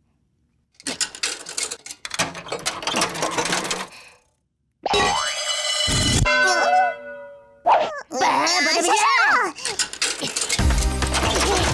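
A metal dial clicks and turns on a coin machine.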